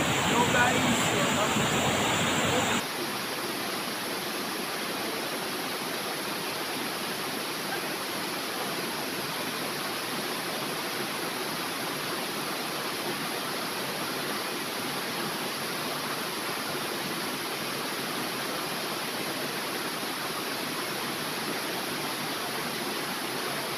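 Water rushes and splashes over rocks outdoors.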